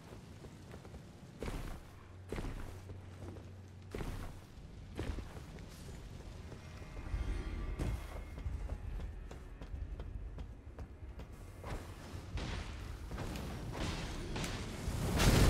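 Footsteps thud on stone at a steady walk.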